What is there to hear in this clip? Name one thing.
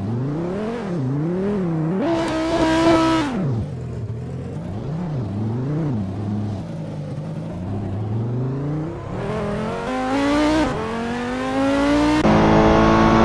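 A racing car engine revs up and down as gears shift.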